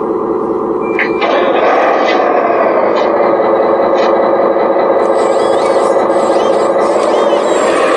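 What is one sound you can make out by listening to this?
Small electric motors whine steadily.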